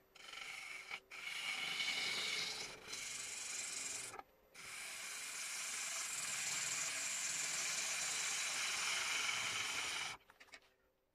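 A chisel shaves wood from a spinning block on a lathe, with a steady hiss.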